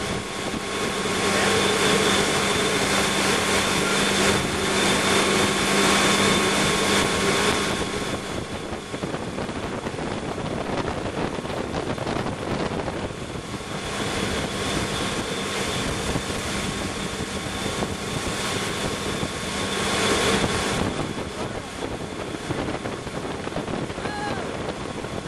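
A motorboat engine drones steadily close by.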